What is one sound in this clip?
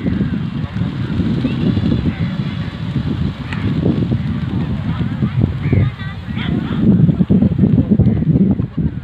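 Pigeons coo and chirp among the flock.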